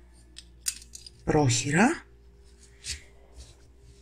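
Metal binder clips snap shut onto fabric.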